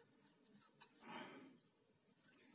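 A cloth rubs softly against a hard surface.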